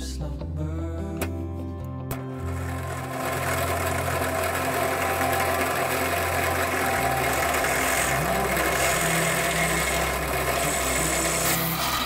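A drill whirs steadily as its bit bores into wood.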